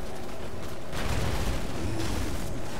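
Video game combat effects clash and crackle.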